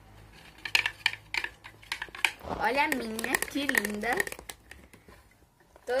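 A spoon scrapes and stirs inside a plastic bowl.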